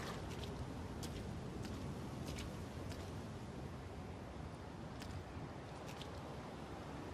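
Footsteps knock on a stone floor.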